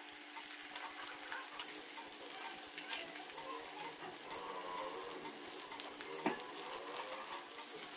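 Onions sizzle and crackle in hot oil.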